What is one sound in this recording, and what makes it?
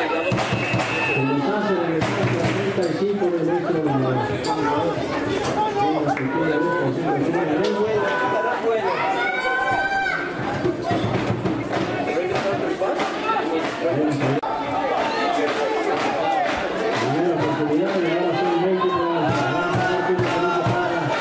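Young men on the sideline talk and shout nearby, outdoors.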